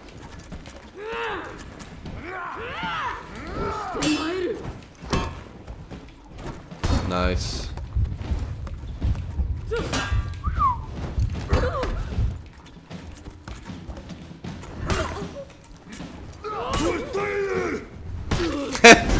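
A young man talks close to a microphone with animation.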